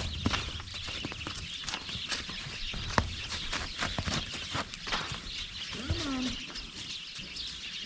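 Hooves crunch and shuffle on snow nearby.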